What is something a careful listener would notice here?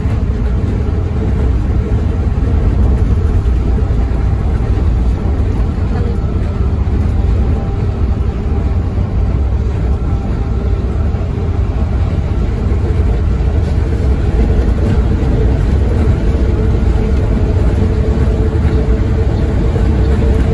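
A vehicle's engine hums and road noise rumbles steadily from inside.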